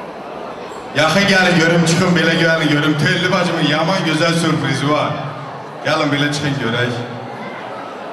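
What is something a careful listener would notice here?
Music plays loudly through loudspeakers in a large echoing hall.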